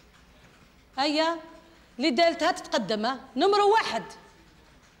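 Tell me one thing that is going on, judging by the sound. A woman speaks briefly in short bursts.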